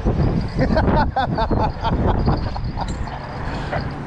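A fishing reel whirs as it is cranked.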